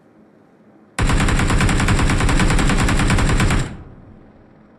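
An automatic rifle fires a rapid, steady burst.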